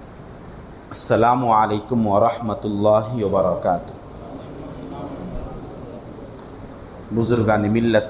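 A man recites in a melodic voice through a microphone.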